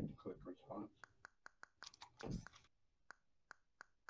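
Keys click in quick succession as someone types.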